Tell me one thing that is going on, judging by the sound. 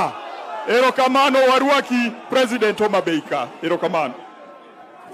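A man speaks loudly into a microphone through loudspeakers.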